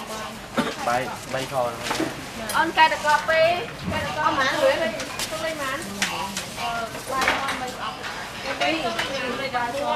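Dishes and utensils clink on a counter.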